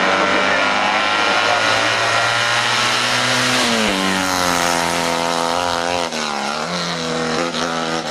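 A small car's engine revs loudly as it races past, dropping and climbing in pitch as the gears change.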